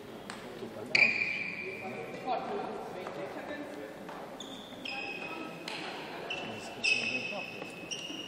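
Sports shoes squeak on a hard court.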